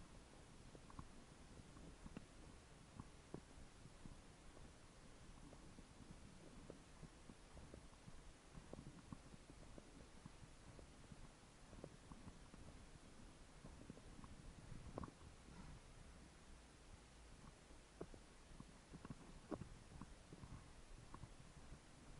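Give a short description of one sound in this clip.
Bicycle tyres hum steadily on a paved road.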